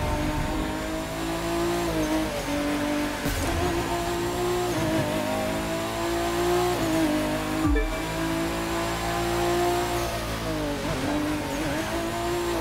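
A race car engine revs hard, rising and dropping in pitch as the gears shift.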